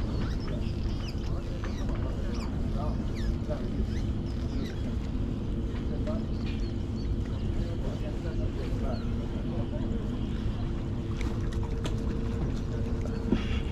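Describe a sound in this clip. A fishing reel clicks as its line is wound in.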